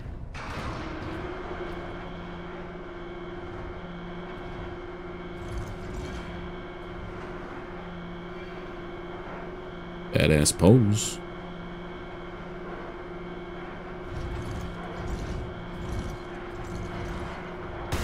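Heavy armoured footsteps thud on a hard floor.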